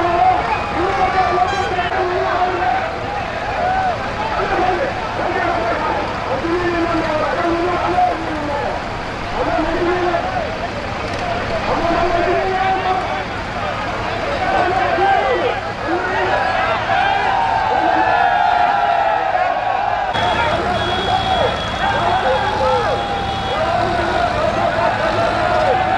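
A large crowd of men and women shouts and chatters loudly outdoors.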